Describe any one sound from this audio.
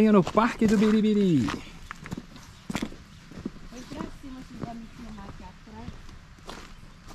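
Footsteps crunch on a dirt trail.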